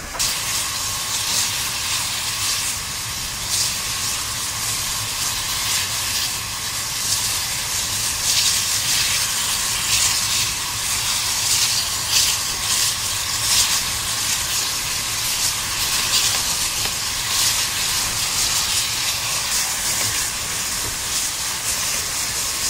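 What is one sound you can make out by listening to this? Steam hisses steadily from a locomotive.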